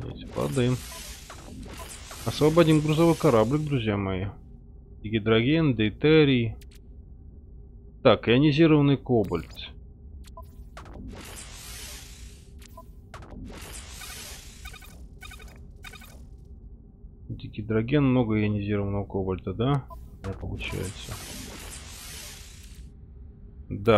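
Soft whooshes sound as menus switch.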